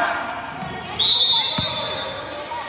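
A referee's whistle blows one short, sharp blast.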